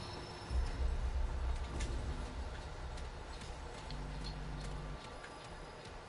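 A low rumbling hum fills the air.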